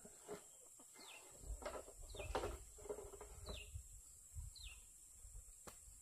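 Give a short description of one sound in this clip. A wooden stick scrapes and knocks against the ground.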